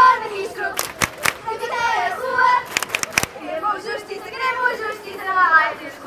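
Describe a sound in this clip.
A young woman shouts through a megaphone.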